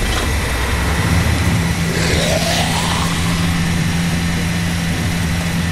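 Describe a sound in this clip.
A zombie groans with a low, rasping moan.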